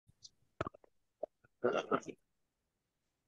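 A middle-aged man speaks briefly over an online call.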